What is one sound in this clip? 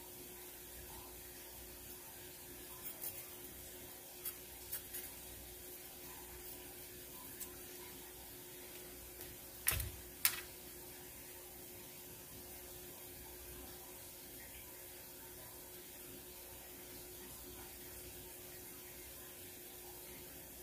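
A knife cuts through a crisp pepper.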